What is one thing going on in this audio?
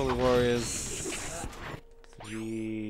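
A man talks into a microphone close by.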